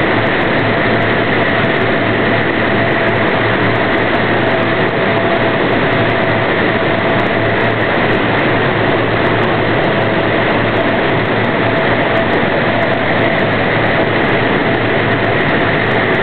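Wind blows hard and steadily across the microphone outdoors.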